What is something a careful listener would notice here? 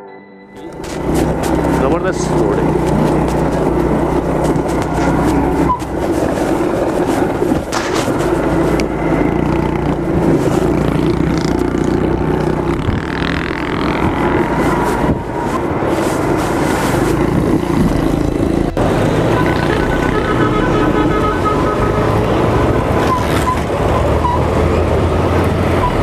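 Wind rushes past the rider.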